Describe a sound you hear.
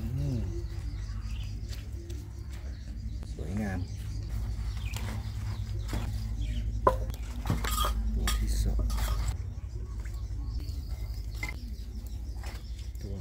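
Metal tongs clink and scrape against a grill grate.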